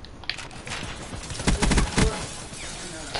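A rifle fires a quick burst of gunshots.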